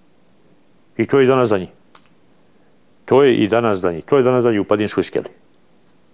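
A middle-aged man speaks calmly and earnestly into a close microphone.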